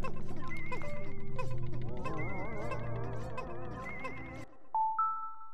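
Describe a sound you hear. Upbeat video game music plays with chiming notes.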